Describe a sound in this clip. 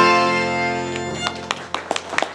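An accordion holds a final chord that rings out and stops.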